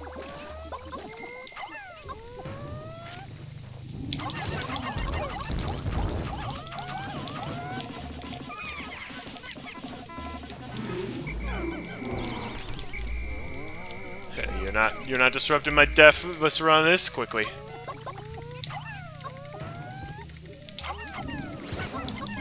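Small creatures chirp and squeak in high, quick voices.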